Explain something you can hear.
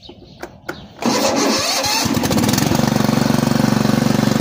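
A lawn mower's engine starts up and runs with a steady rumble close by.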